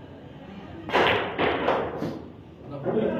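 Billiard balls knock together and roll across the table.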